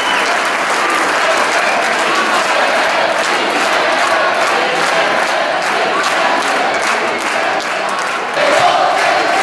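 A large crowd sings together in a big echoing hall.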